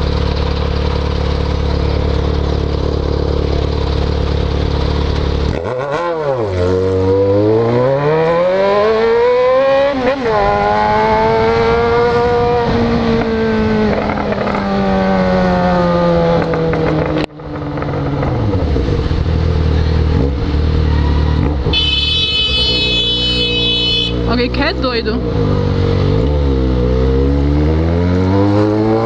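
A motorcycle engine idles, then revs up and roars as the motorcycle accelerates and shifts gears.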